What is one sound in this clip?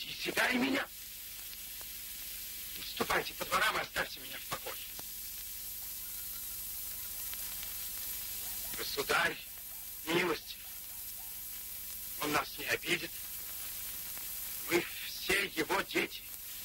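A man speaks sternly in short bursts, close by, with long pauses between them.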